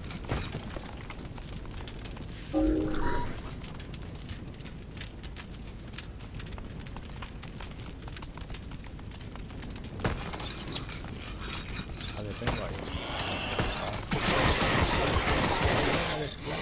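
Small footsteps patter on stone.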